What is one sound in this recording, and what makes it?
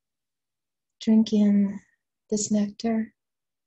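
A woman speaks slowly and calmly close to a microphone, in a soft, sustained voice.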